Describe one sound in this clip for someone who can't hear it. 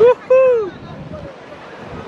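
Waves wash onto a beach in the distance.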